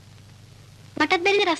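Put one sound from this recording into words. A woman speaks loudly and sharply nearby.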